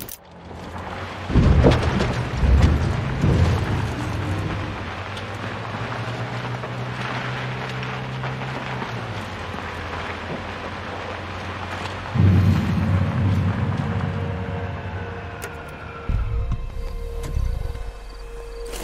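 A car engine rumbles and revs while driving over rough ground.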